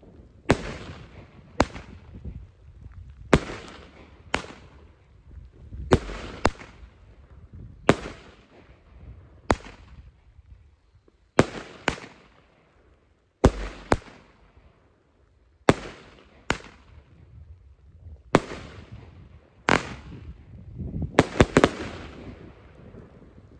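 Fireworks burst with loud, sharp bangs that echo away.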